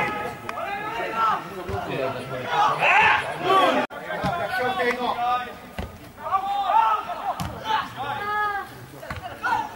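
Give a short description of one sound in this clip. Young men shout to each other across an outdoor pitch.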